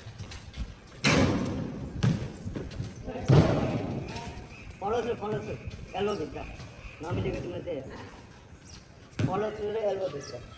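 Young boys shout and call out to each other outdoors.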